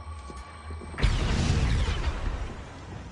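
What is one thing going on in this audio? A wooden chest crashes and thuds down.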